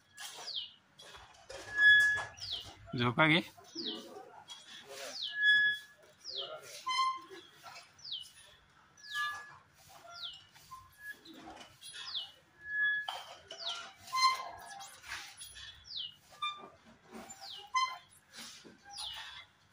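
Metal swings creak rhythmically as they swing back and forth.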